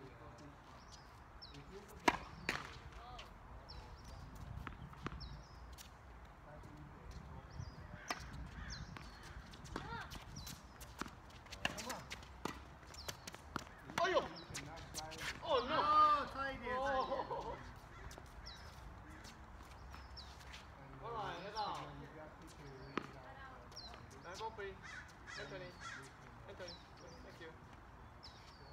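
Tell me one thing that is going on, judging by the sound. Tennis rackets hit a ball with sharp pops, back and forth.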